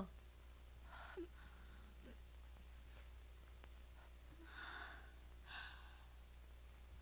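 A woman speaks softly.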